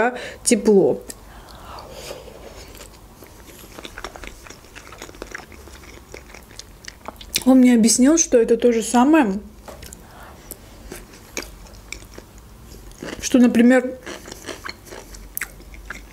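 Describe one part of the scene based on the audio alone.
A young woman chews food with soft wet mouth sounds.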